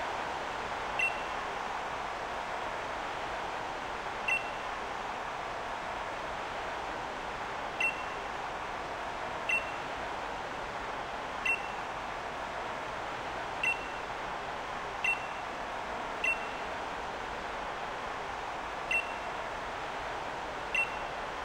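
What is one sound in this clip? A short, bright chime sounds now and then as text advances.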